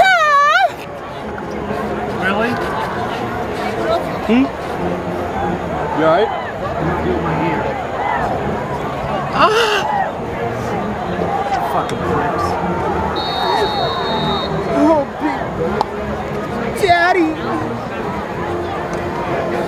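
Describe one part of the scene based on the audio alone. A crowd of spectators chatters all around in a large open stadium.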